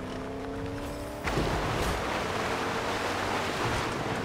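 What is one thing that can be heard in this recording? Water splashes loudly as a truck plows into it.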